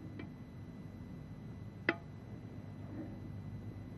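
A small cup clinks against a coffee pot.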